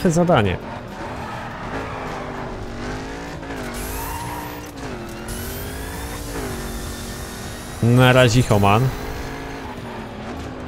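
A racing car engine roars steadily, its pitch rising and dipping as it shifts gears.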